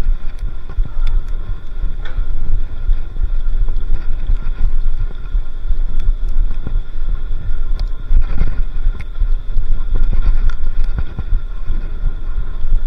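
Bicycle tyres roll and crunch over a bumpy dirt trail.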